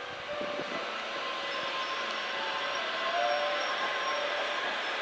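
Train brakes squeal faintly.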